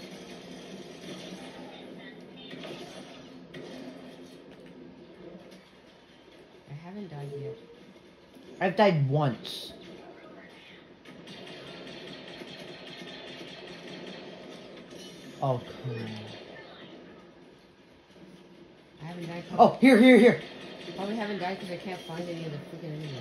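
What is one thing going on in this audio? Video game sounds and music play from a television.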